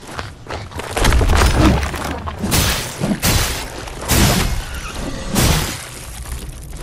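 A sword swings and strikes with heavy blows.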